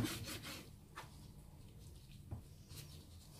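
A knife taps against a plastic board.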